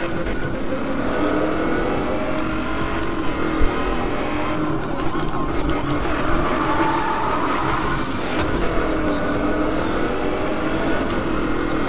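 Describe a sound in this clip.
A car engine roars at high speed, its pitch rising and falling as it shifts gears.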